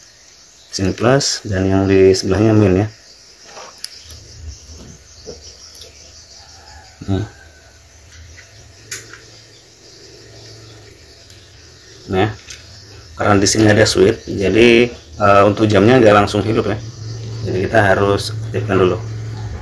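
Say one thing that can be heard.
Small plastic parts click and tap as hands handle them.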